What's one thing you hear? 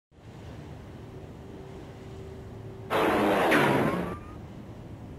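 Small waves lap softly against a sandy shore.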